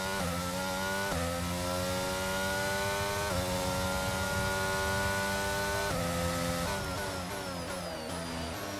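A racing car engine screams at high revs, climbing through the gears with sharp shifts, then winds down.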